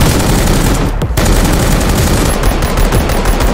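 A rifle fires rapid shots that boom and echo outdoors.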